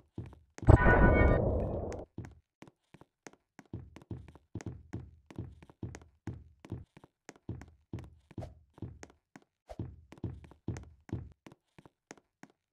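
Quick footsteps patter steadily as a game character runs.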